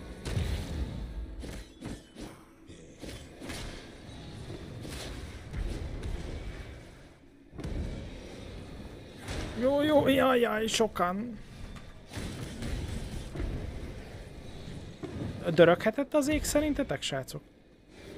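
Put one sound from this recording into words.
Fantasy game combat effects clash and whoosh.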